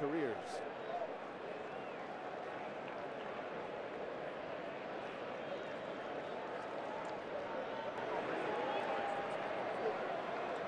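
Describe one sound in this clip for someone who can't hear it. A stadium crowd murmurs and cheers steadily in a large open space.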